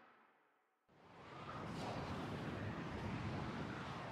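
A spaceship engine hums low.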